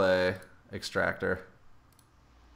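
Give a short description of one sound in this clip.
A man speaks casually into a microphone.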